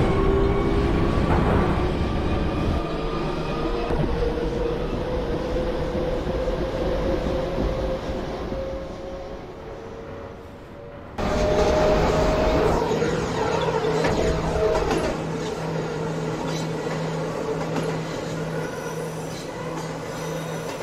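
A subway train rumbles along the tracks.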